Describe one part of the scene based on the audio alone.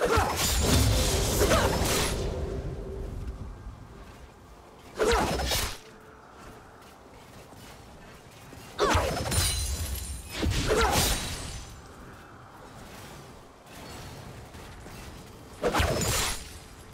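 Game spells and attacks burst and crash in short loud flurries.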